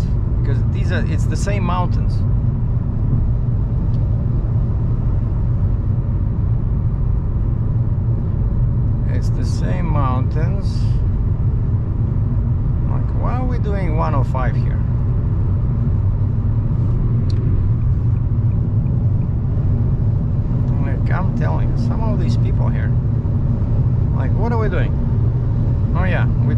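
A car engine hums and tyres rumble steadily on a highway, heard from inside the car.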